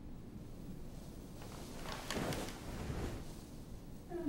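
Bedsheets rustle as a boy sits up in bed.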